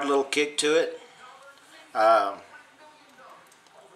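A revolver's cylinder clicks shut.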